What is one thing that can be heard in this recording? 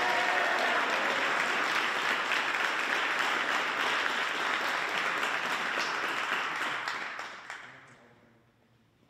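A band plays in a large echoing hall, then fades out.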